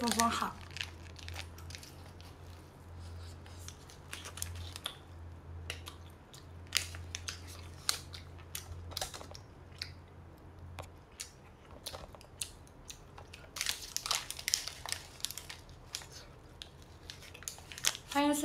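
A young woman chews and smacks her lips while eating.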